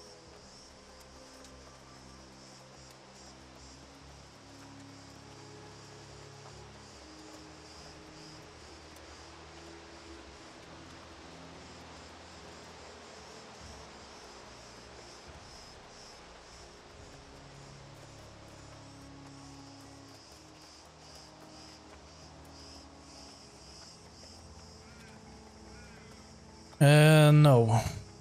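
Footsteps patter steadily on soft ground.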